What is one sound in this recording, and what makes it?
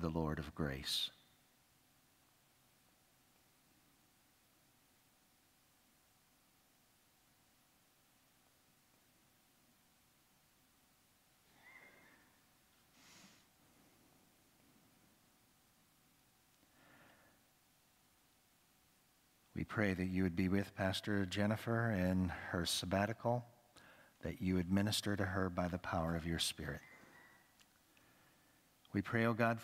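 A man reads aloud calmly through a microphone in a reverberant room.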